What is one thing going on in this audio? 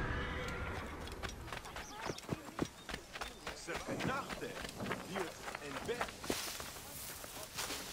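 Footsteps crunch quickly on dry dirt.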